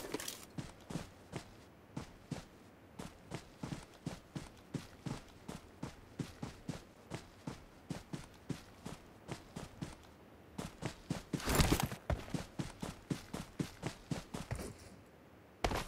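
Footsteps crunch quickly through grass.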